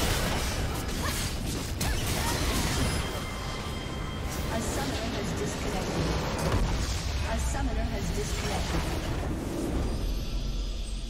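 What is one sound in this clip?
Video game battle sounds clash, zap and crackle loudly.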